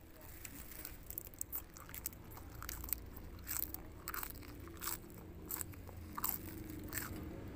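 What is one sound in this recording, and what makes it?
A young woman chews crunchy greens loudly, close up.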